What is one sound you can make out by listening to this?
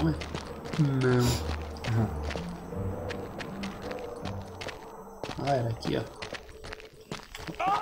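Footsteps scuff on a stone floor.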